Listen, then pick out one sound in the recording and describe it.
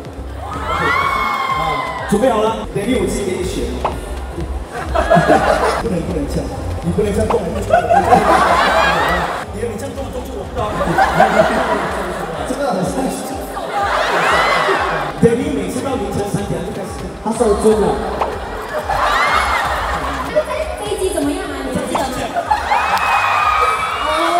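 Young men laugh loudly.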